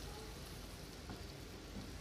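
A spatula scrapes through thick sauce in a pan.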